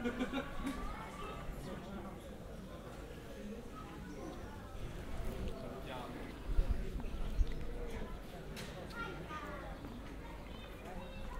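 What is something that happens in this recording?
Men and women chat quietly at a distance outdoors.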